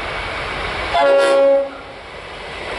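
A train horn sounds a loud, short blast.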